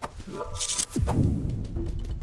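Puffs of smoke burst with a soft whoosh.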